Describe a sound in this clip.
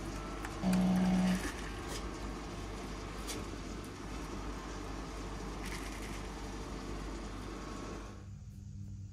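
A coffee machine whirs as it pours coffee.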